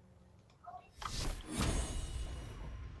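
A magical blast whooshes and crackles.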